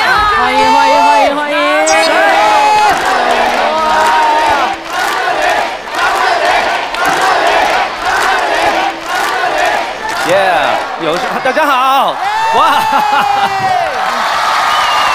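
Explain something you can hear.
A man sings through a microphone over a loudspeaker.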